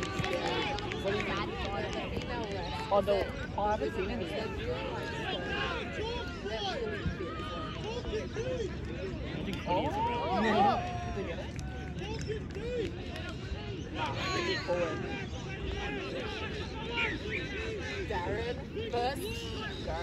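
Spectators along the sideline cheer and shout from a distance.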